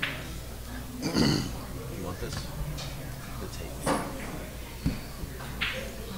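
Pool balls click together on a table.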